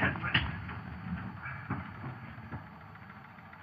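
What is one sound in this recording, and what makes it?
Two men scuffle, with thumps and shoves against a door.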